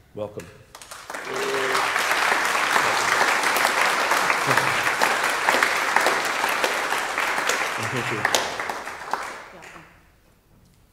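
A crowd applauds warmly.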